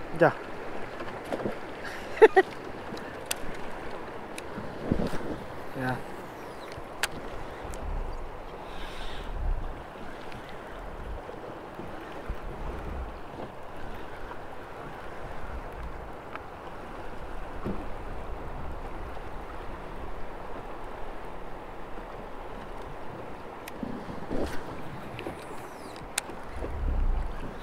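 River water rushes steadily nearby.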